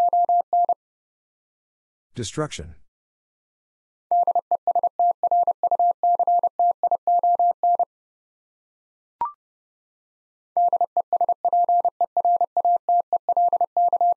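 A Morse code key taps out quick, steady beeps.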